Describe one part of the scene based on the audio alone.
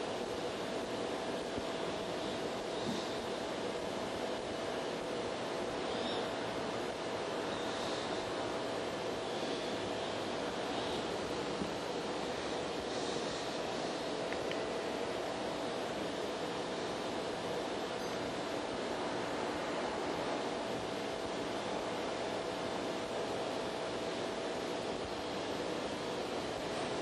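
A man reads aloud calmly in a large echoing hall, heard from a distance.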